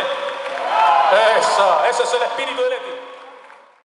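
A bandoneon plays chords.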